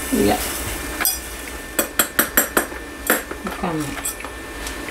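A spoon clinks and scrapes against a bowl.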